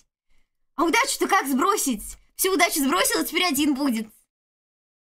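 A young woman speaks with animation close to a microphone.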